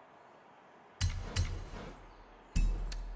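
A menu chimes with short electronic selection sounds.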